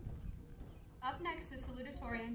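A young woman speaks into a microphone, heard through outdoor loudspeakers.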